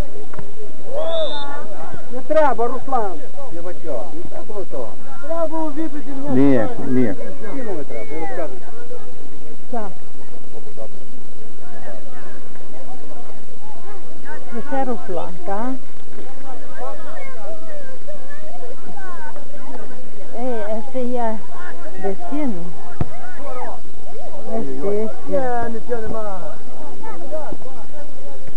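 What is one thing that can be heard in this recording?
Men shout and call out in the distance.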